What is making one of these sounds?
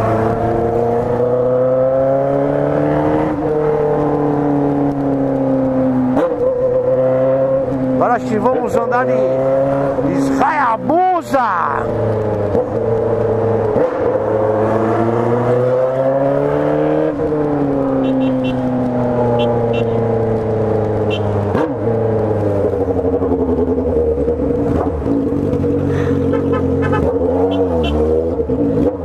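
A motorcycle engine hums steadily close by, rising and falling in pitch as the rider speeds up and slows down.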